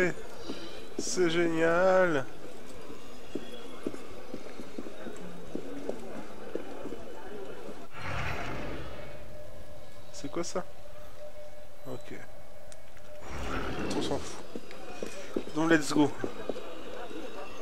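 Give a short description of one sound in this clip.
Footsteps tap on cobblestones.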